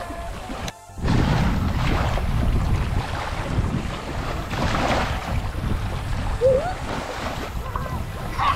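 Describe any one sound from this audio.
A child splashes and paddles in shallow water.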